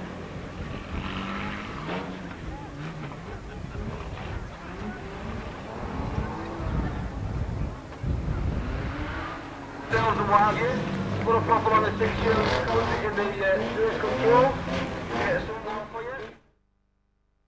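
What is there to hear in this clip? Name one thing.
Car engines rev and roar loudly outdoors.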